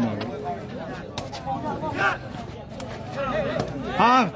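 A ball thuds off a player's foot.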